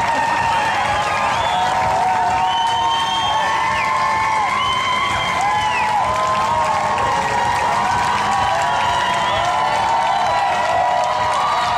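A large crowd cheers loudly outdoors.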